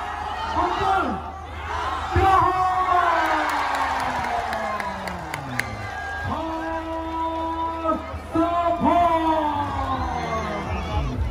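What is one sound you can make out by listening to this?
A young man announces loudly through a microphone over a loudspeaker, in a large echoing hall.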